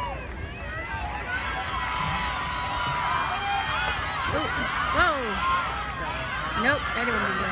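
A large crowd cheers and shouts outdoors, growing louder.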